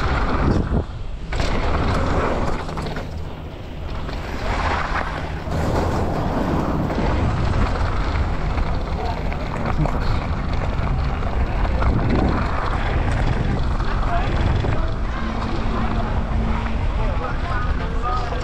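Bike tyres crunch and rattle over gravel and dirt.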